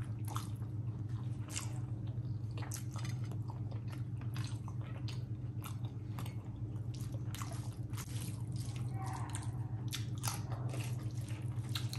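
A woman chews food wetly, close to a microphone.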